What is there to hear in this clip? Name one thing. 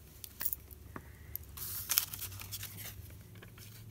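Paper rustles and scrapes on a table as a card is lifted away.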